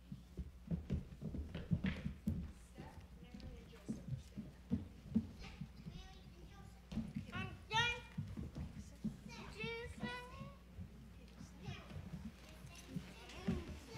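Children's footsteps thump and shuffle across a wooden stage.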